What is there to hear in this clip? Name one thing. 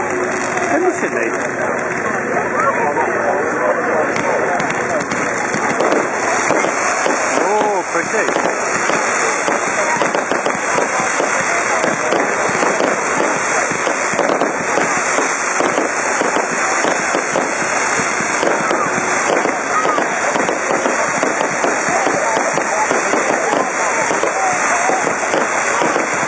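Fireworks crackle and pop rapidly and continuously.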